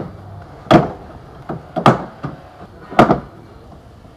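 Metal bangs sharply as a car tailgate is struck from below.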